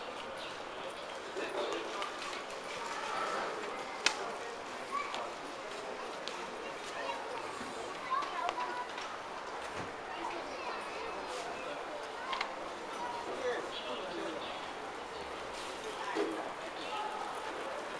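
Distant people chatter in an open, busy public space.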